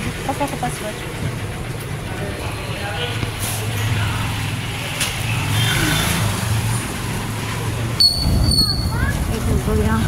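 A motorcycle engine hums steadily close by.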